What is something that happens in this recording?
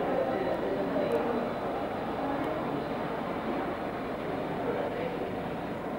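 A door handle clicks and a door opens.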